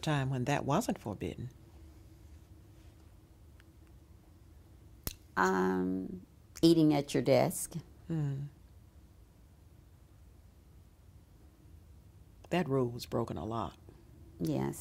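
An elderly woman speaks calmly and closely, in short bursts with pauses.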